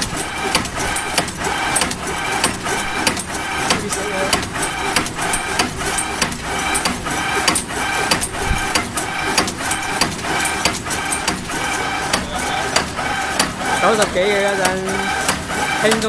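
A packaging machine clatters with a fast, regular rhythmic clicking.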